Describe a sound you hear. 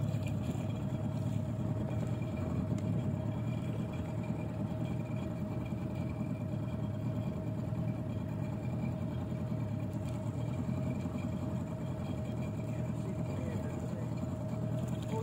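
An electric boat motor hums steadily.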